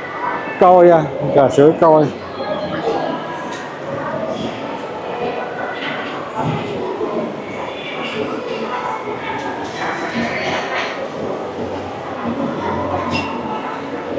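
Many people chatter in a low murmur in a large echoing hall.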